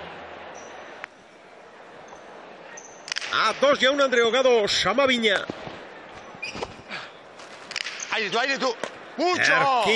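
A ball smacks sharply against a wall and echoes in a large hall.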